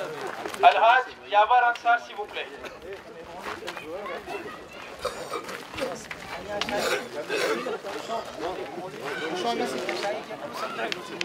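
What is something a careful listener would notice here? A crowd of men chatter and talk loudly in an echoing hall.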